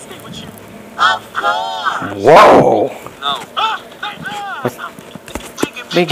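A man shouts and yells with animation, heard through a loudspeaker.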